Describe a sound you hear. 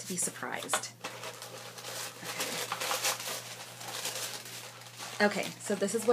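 Cardboard and plastic packaging rustles in hands.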